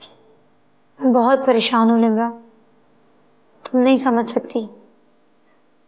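A young woman speaks tensely nearby.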